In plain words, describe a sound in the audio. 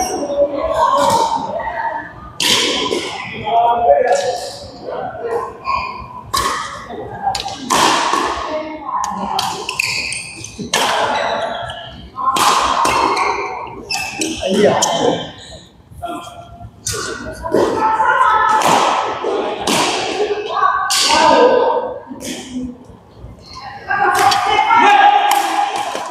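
Rackets strike a shuttlecock in quick rallies, echoing in a large hall.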